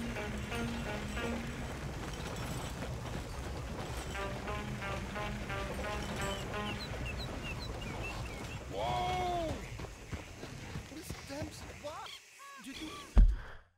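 Horse hooves clop on a dirt track.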